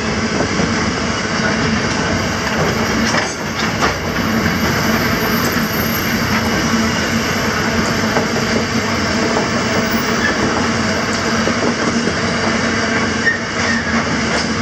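A freight train rumbles past close by, its wheels clattering steadily on the rails.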